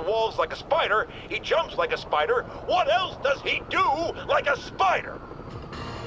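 A man talks loudly and with animation through a radio.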